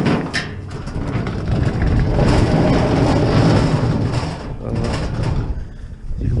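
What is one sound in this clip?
Grill wheels roll noisily over pavement.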